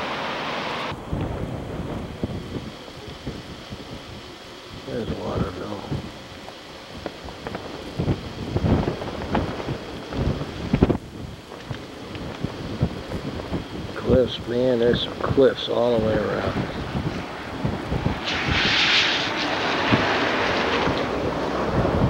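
Wind gusts and rumbles outdoors.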